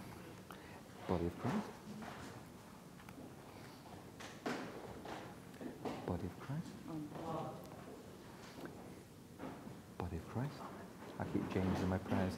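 A man speaks quietly into a microphone in a large echoing hall.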